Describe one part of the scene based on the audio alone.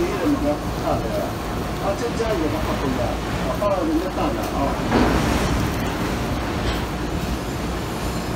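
Heavy machinery rumbles steadily.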